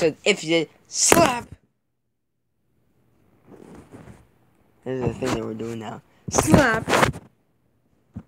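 A teenage boy talks and laughs close by, with animation.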